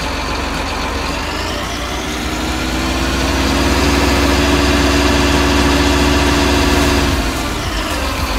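A hydraulic motor whines, rising in pitch, then stops abruptly.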